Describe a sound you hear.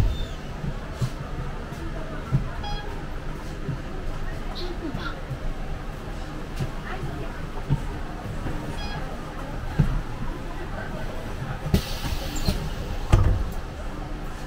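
A bus engine hums steadily while riding.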